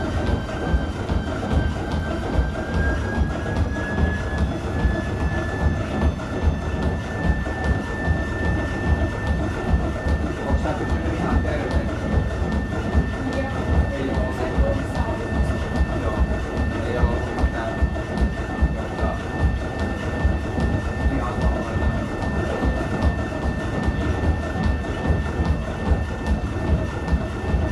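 A treadmill motor hums steadily with a high whine.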